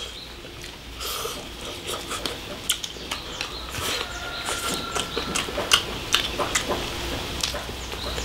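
Two men slurp and chew food noisily up close.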